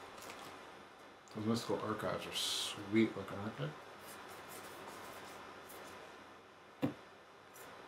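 Playing cards rustle and slap together in hands.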